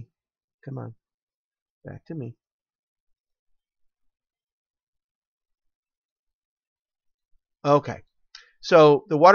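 A man speaks calmly into a headset microphone, in short bursts with pauses.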